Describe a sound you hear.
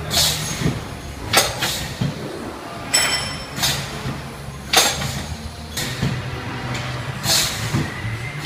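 Pneumatic cylinders on a packaging machine hiss and clack in short bursts.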